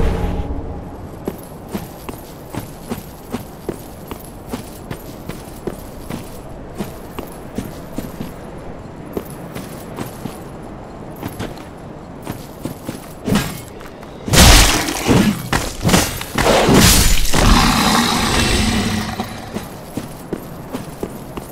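Armoured footsteps crunch steadily over rough ground.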